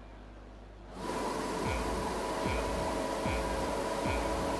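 A racing car engine revs while idling on the grid.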